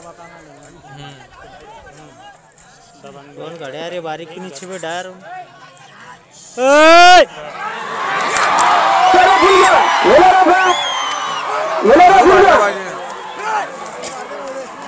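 A crowd of men shouts and cheers excitedly outdoors.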